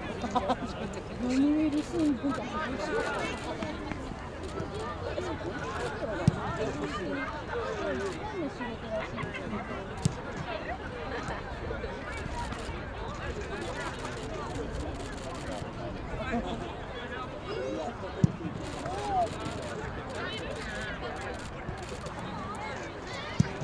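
A crowd of spectators chatters nearby outdoors.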